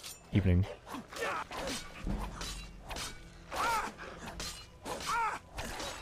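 A wolf snarls and growls.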